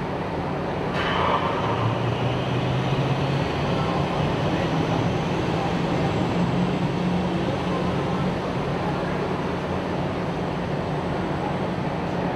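Sea water churns and splashes as an amphibious assault vehicle drives into it.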